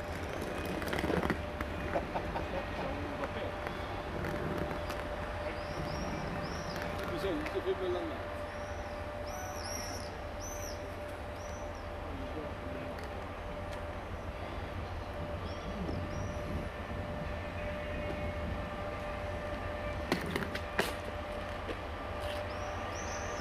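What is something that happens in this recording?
An electric train approaches slowly along the track, rumbling and humming steadily.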